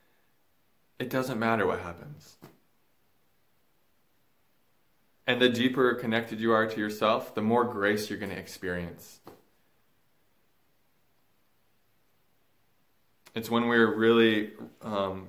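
A young man speaks calmly and earnestly, close to the microphone, with long pauses.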